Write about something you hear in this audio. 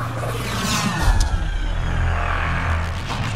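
A spaceship's engines roar with a deep, steady rumble.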